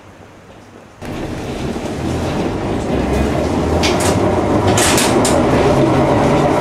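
A tram rattles and hums while riding, heard from inside.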